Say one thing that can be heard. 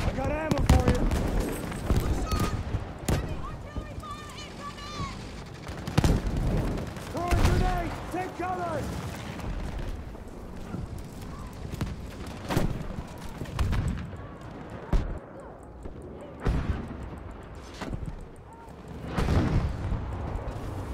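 Loud explosions boom and rumble nearby.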